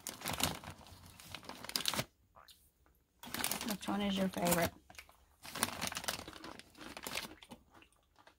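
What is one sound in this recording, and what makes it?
Crunchy snacks rattle against each other in a bag.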